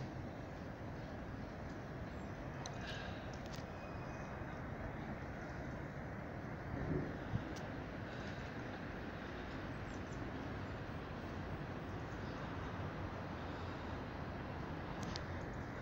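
Wind rumbles steadily across the microphone outdoors.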